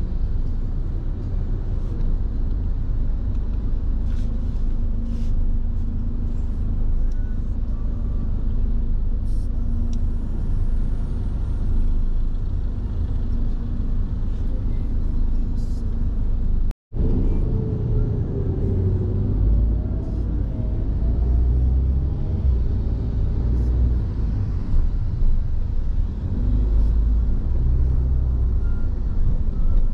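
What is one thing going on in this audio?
Road traffic rumbles steadily outdoors.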